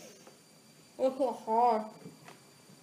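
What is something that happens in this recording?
A boy speaks briefly, close by.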